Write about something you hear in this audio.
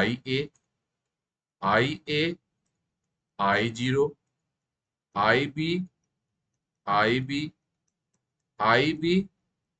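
A middle-aged man speaks calmly into a microphone in short phrases, with pauses between them.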